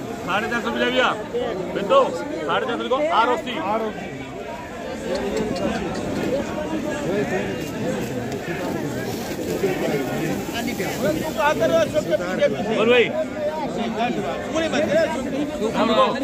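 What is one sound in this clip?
Several men talk over one another close by, with animation.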